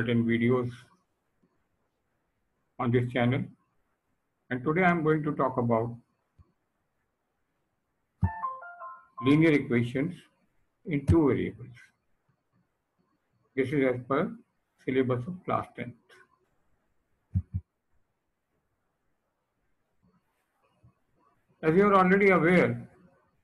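An elderly man speaks calmly over an online call, in short phrases with pauses.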